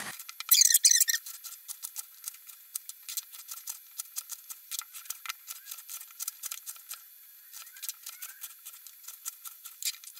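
A knife chops through potatoes on a wooden board with quick, light knocks.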